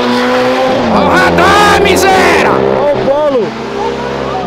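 A sports car engine revs sharply, rising and falling in pitch.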